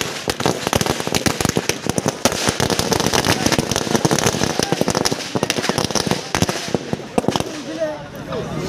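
Firecrackers crackle and pop in rapid bursts outdoors.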